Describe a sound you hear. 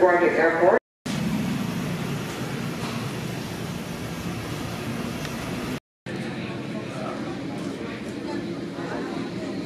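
Jet engines rumble steadily as airliners taxi nearby.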